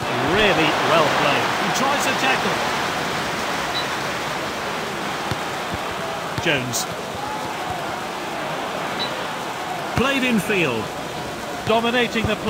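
A large crowd murmurs steadily in an echoing stadium.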